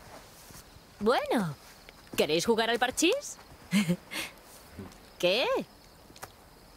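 A young woman speaks calmly and questioningly, close by.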